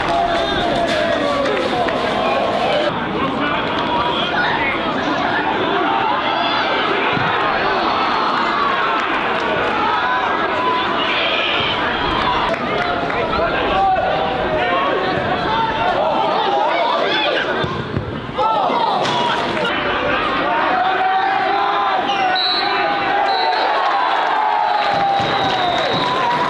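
A crowd of spectators cheers and shouts in a large outdoor stadium.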